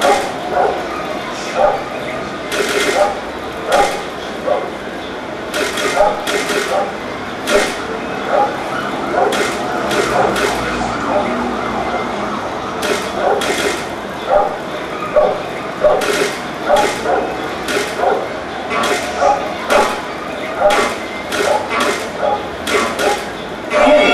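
Video game gunshots pop repeatedly through a television speaker.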